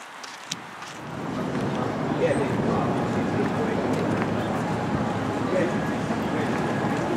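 A car drives past on a nearby street.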